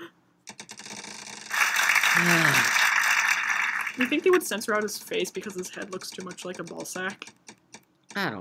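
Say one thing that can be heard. A prize wheel clicks rapidly as it spins, then slows down.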